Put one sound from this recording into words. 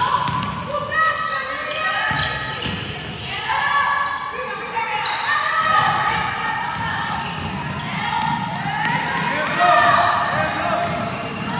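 Young women shout and call out to each other across the court.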